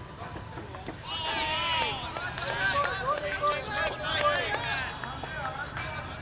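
Young men shout and call out excitedly from a distance outdoors.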